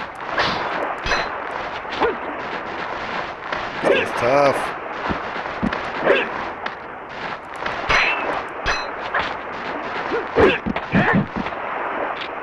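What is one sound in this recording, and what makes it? Swords swish and clash in quick, sharp strikes.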